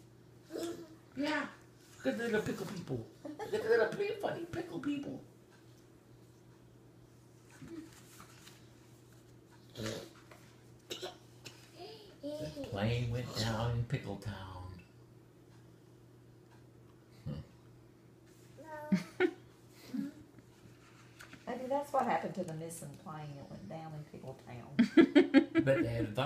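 A toddler babbles and laughs close by.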